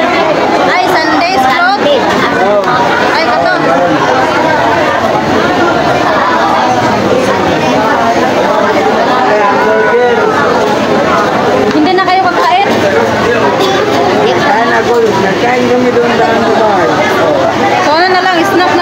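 A crowd of people chatters in a busy, echoing room.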